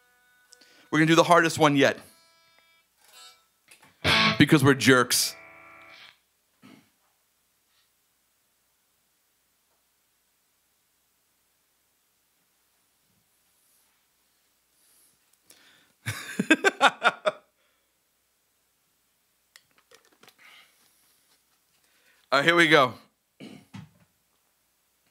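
An electric guitar plays loud, short bursts of chords through an amplifier.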